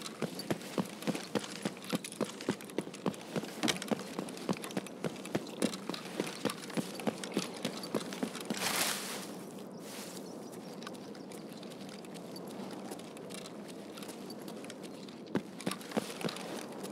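Footsteps tread quickly on hard pavement.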